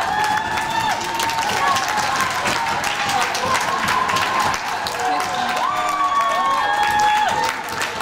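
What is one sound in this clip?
Young players shout excitedly as they celebrate together.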